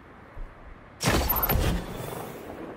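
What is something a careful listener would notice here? A sniper rifle fires a loud, booming shot that echoes briefly.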